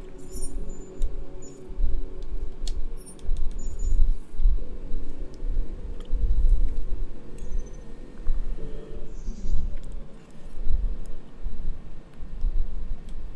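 Short electronic beeps and clicks sound as menu items are chosen.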